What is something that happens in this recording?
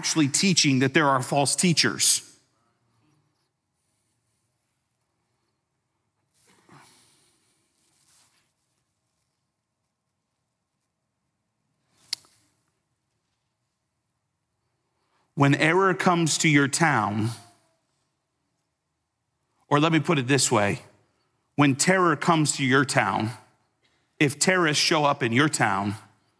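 A man speaks with feeling into a microphone, with pauses between phrases.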